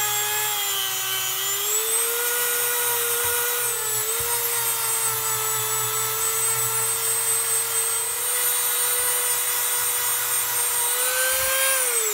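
A rotary tool whines at high speed, its pitch shifting slightly as it grinds metal.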